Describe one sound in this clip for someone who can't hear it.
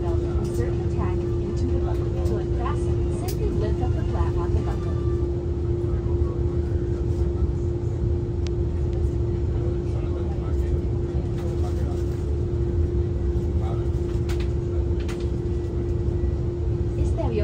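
An aircraft's engines drone steadily with a low, humming rumble.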